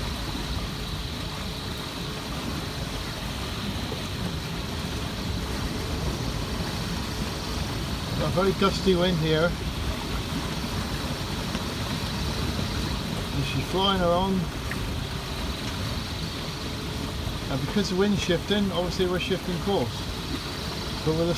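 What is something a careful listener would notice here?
Strong wind buffets and rumbles steadily outdoors.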